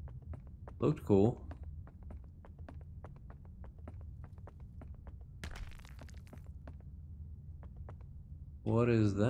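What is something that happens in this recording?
Footsteps tread steadily on rocky ground.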